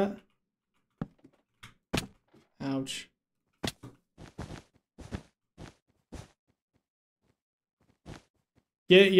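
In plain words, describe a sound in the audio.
Blocks are set down with short, soft taps.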